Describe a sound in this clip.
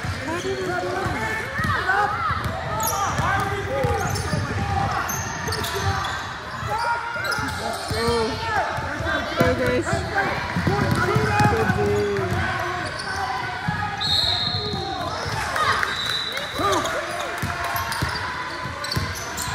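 Spectators and players shout and call out in a large echoing gym.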